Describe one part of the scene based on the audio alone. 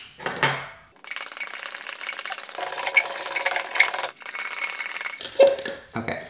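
A stick scrapes and stirs inside a jar.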